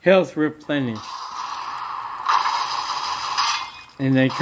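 Game sound effects play from a small handheld console speaker.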